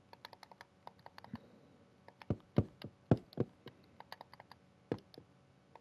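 Wooden blocks are placed with soft taps.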